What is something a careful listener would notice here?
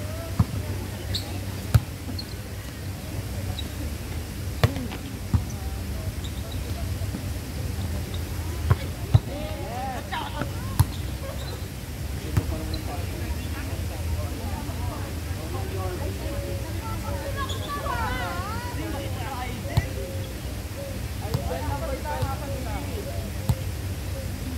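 A volleyball is struck with sharp slaps outdoors.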